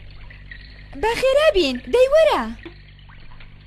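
A boy speaks with animation.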